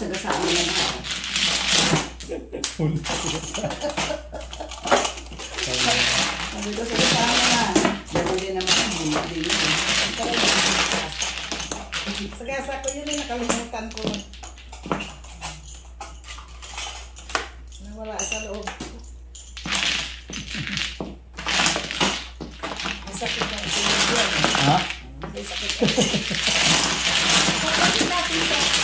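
Plastic tiles clack and rattle as hands shuffle them across a table.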